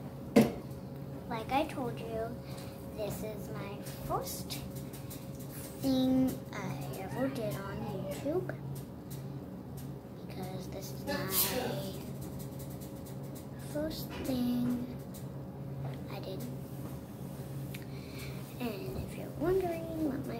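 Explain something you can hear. A young girl talks calmly close by.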